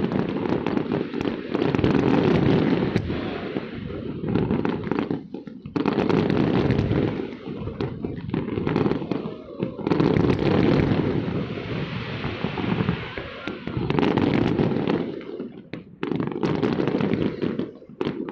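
Fireworks pop and crackle in the distance.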